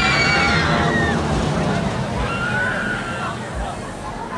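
Riders scream on a swinging fairground ride.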